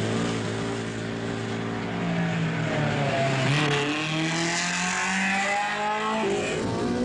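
A sports car engine revs and roars as the car speeds along a winding road.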